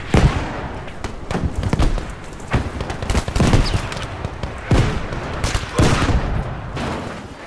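Rifle shots crack out one after another, booming loudly.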